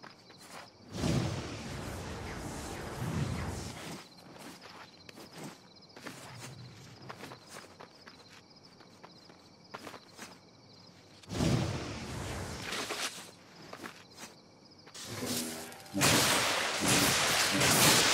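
Electricity crackles and zaps in loud bursts.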